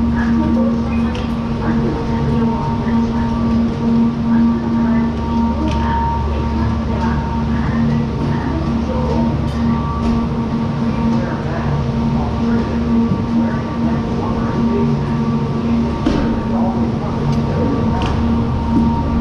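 Lift machinery hums steadily and loudly in an echoing hall.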